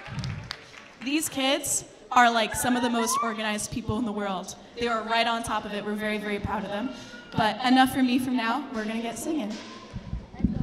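A woman speaks with animation into a microphone over loudspeakers in a large hall.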